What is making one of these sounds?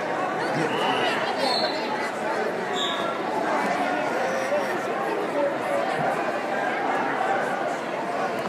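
A large crowd chatters and shouts throughout a big echoing arena.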